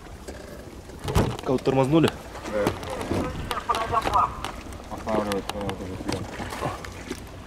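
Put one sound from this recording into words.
Dry reeds rustle and scrape against a boat.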